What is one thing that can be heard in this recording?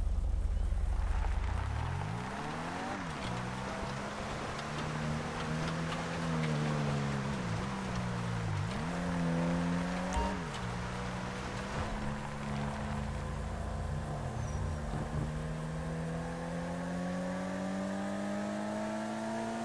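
A car engine revs up and down as it drives.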